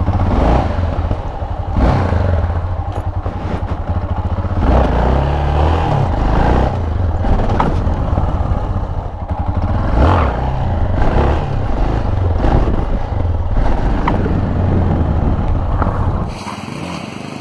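A single-cylinder dual-sport motorcycle engine revs hard during wheelies.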